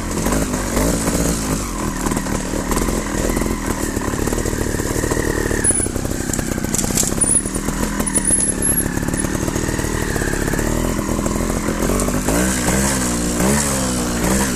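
A motorbike engine revs up and down close by.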